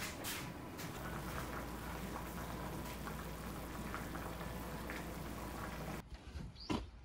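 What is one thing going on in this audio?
A pot of soup bubbles and simmers.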